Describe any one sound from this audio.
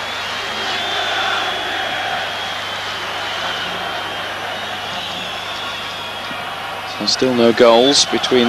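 A large crowd murmurs and whistles steadily in a big open stadium.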